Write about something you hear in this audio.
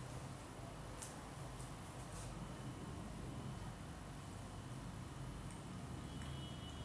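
A cat laps water from a bowl.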